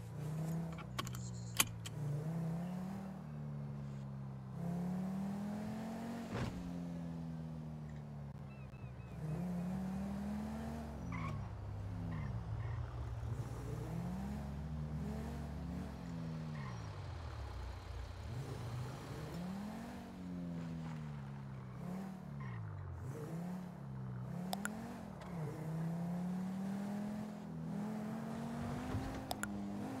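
A car engine revs up and down as it speeds up and slows.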